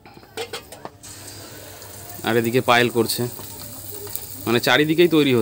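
Batter sizzles softly in hot oil.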